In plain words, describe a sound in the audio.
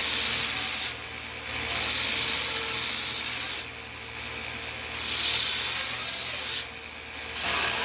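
A belt sander motor hums steadily.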